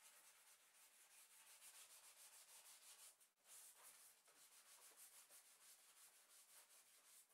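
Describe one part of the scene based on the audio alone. Sandpaper rubs rapidly back and forth over painted wood.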